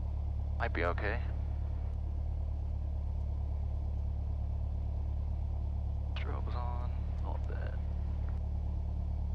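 A man speaks briefly over a headset intercom.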